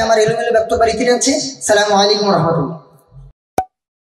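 A young man speaks into a microphone over a loudspeaker system with animation.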